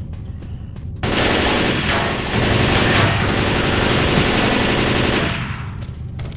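Loud, dense video game fighting noise erupts and then fades.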